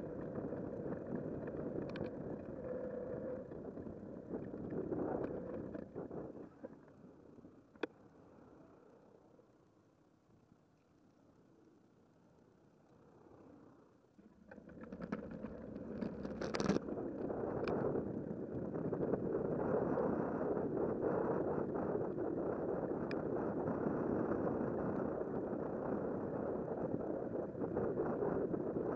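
Wind rushes loudly over the microphone.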